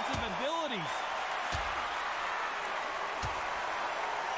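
Boxing gloves thud against a body in sharp blows.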